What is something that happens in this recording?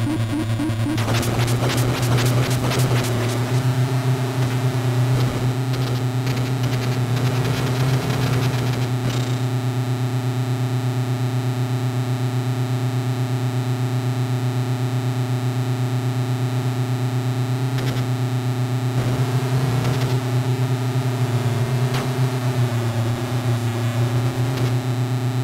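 A small tank's engine hums with a steady, buzzing drone.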